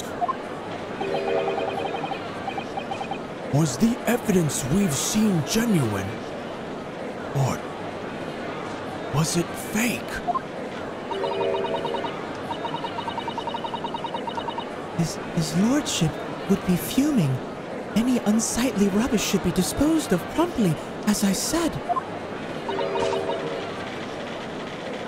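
Rapid electronic beeps chirp in quick bursts.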